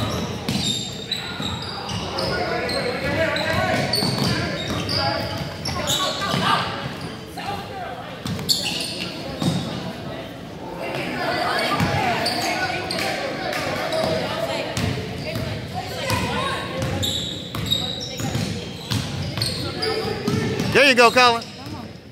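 Spectators and players call out and chatter in the background.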